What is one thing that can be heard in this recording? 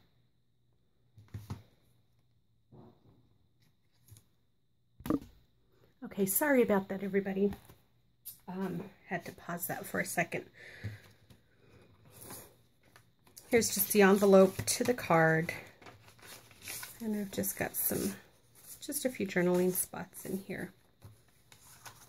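Paper rustles and crinkles as pages and cards are handled.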